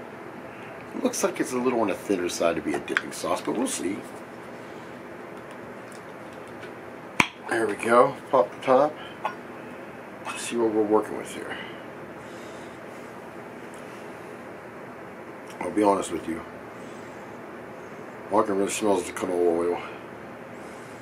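A man talks calmly, close to a microphone.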